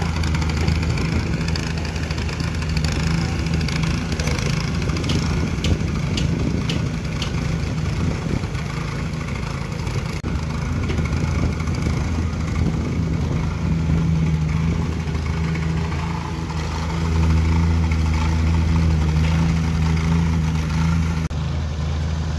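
A plate compactor engine rumbles and thumps steadily close by.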